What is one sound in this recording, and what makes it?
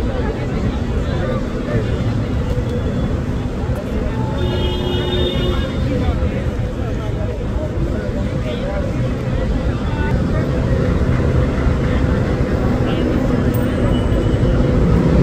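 Men and women chatter in the background outdoors.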